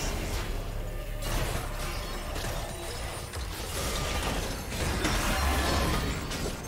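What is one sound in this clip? Game spell effects crackle and burst during a fight.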